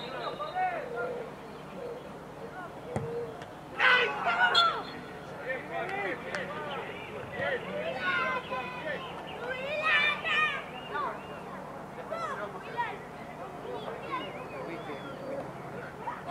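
Men talk and call out across an open field.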